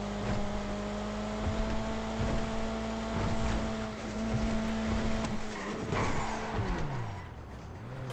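A car engine hums steadily, then winds down.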